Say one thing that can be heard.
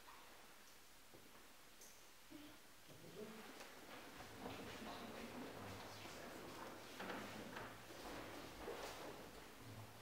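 Bare feet shuffle and thud on a wooden floor in an echoing room.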